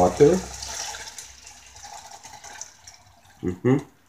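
Water pours into a hot pan and sizzles.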